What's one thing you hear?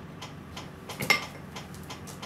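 A metal tool clanks once against metal.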